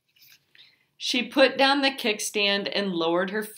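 A woman reads aloud calmly, close by.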